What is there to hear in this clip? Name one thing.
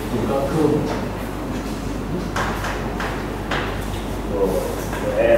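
A man lectures in a calm voice.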